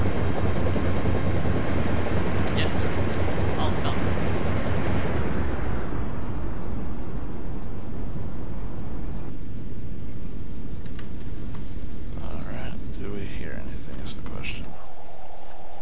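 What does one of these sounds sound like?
A submarine's engine rumbles deep and steady underwater.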